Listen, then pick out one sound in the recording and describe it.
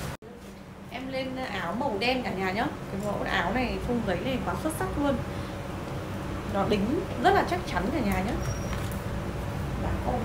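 A young woman talks to the listener close up, with animation.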